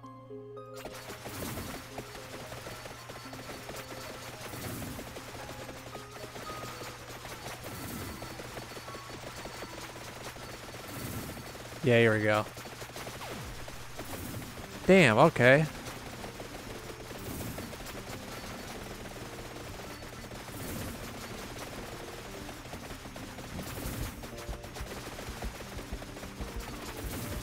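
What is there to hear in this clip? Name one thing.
Video game sound effects clatter and chime steadily.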